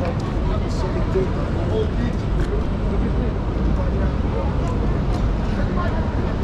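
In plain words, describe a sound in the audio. A busy city street hums with traffic and crowd noise outdoors.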